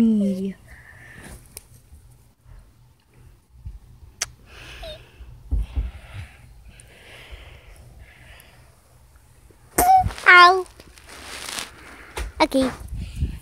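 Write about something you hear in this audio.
Soft fabric rustles and brushes close by as a plush toy is handled.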